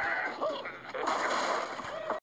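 Wooden blocks crash and topple.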